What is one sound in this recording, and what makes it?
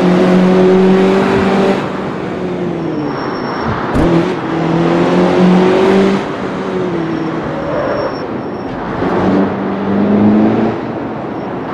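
A car engine revs hard, rising and falling in pitch as gears shift.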